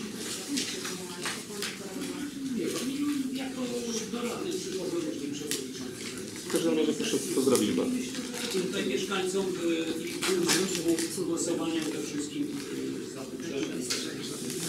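A man speaks calmly, heard from across a room.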